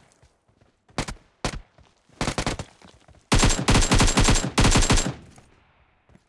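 A rifle fires in short bursts and then a long rapid burst.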